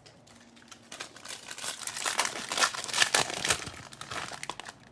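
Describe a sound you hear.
A foil wrapper crinkles loudly.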